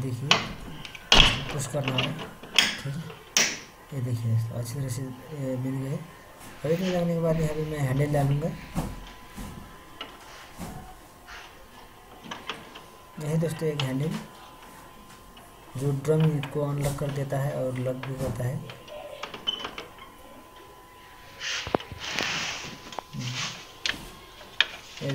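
Plastic parts of a machine click and knock as they are handled.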